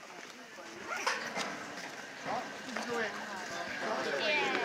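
Young women and men chat nearby as they walk.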